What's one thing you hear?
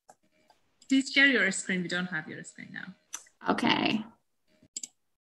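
Another woman speaks cheerfully over an online call.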